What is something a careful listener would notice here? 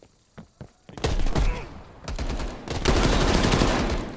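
Rapid gunfire bursts loudly and close.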